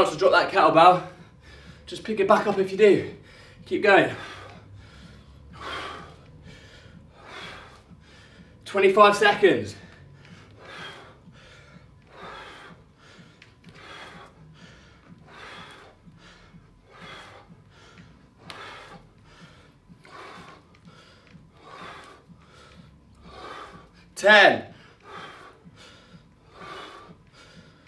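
A man breathes out hard with each swing of a weight.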